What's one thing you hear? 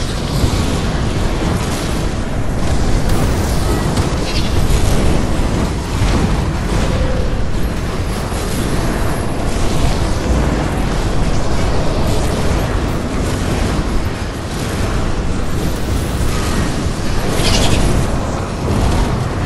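Magic spells burst and crackle in a fast fight.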